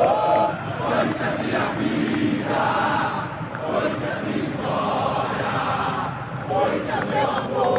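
Fans close by clap their hands.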